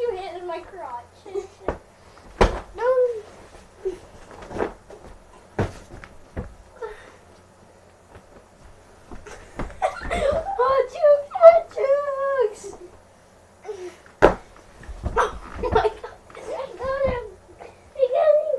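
Young boys shout and squeal playfully nearby.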